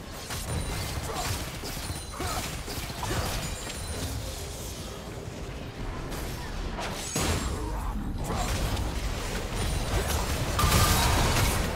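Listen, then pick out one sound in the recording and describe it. Magic blasts and hits crackle and thud in a busy video game battle.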